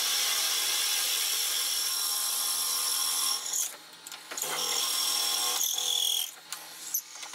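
A wood lathe motor hums steadily.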